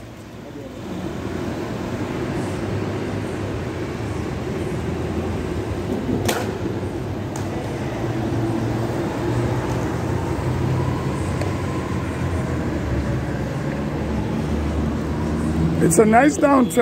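Car engines hum and tyres roll past on the street.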